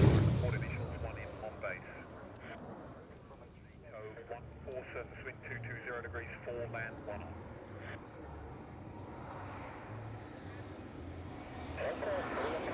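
A jet engine rumbles in the distance.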